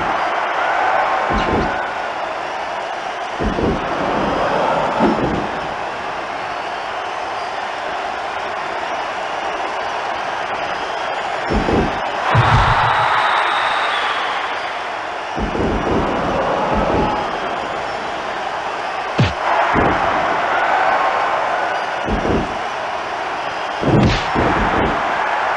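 A crowd roars and cheers steadily in a large arena.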